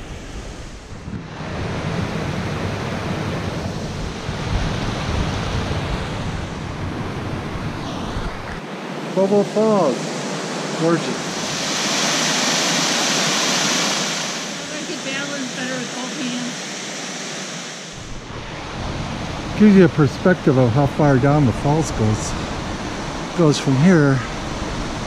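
Water rushes and splashes over rocks.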